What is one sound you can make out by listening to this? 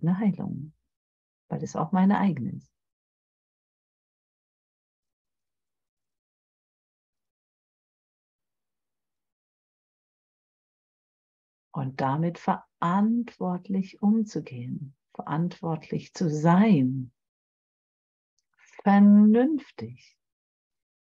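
A middle-aged woman speaks calmly over an online call, with long pauses.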